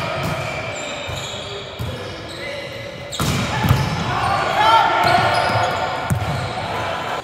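Sneakers squeak on a gym floor in a large echoing hall.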